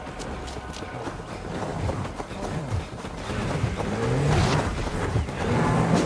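Bulls snort and grunt close by.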